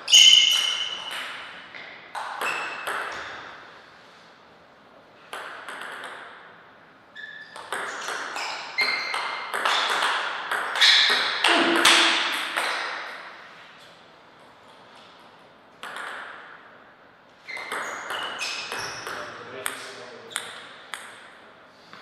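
A light echo rings after each hit.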